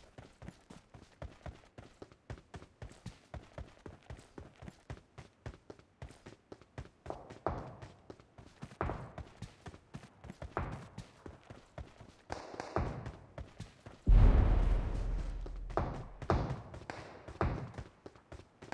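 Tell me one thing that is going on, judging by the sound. Quick footsteps run steadily over the ground.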